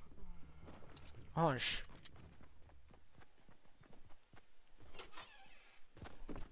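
Footsteps clatter quickly across a wooden roof.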